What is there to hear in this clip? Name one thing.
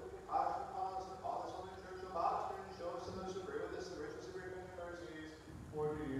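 Men chant together in a large echoing hall.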